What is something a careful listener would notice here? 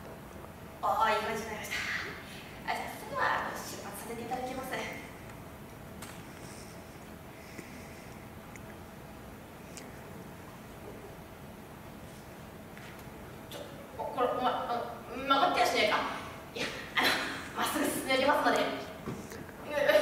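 A young woman speaks expressively into a microphone in a hall, with an echo.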